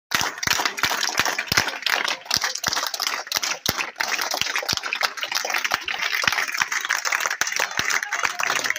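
A crowd of men and women murmurs in the background.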